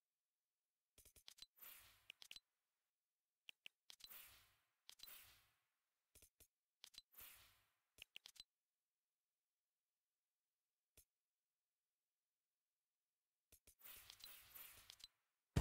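Game menu sounds click and whoosh as selections change.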